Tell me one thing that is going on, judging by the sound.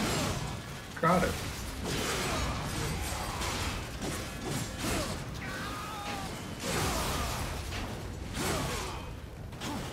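Fiery explosions burst one after another.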